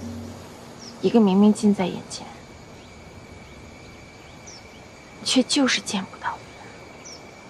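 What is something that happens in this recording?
A young woman speaks softly and sadly.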